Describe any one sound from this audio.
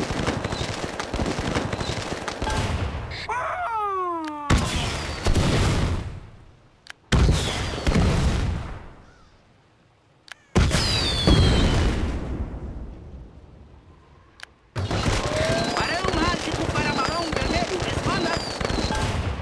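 Game weapons fire in bursts with fiery blasts.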